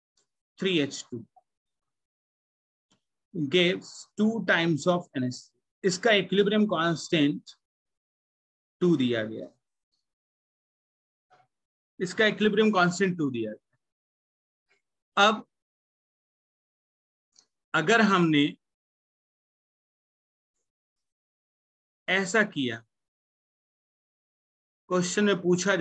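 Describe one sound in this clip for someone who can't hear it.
A young man explains calmly into a close microphone, in short bursts with pauses.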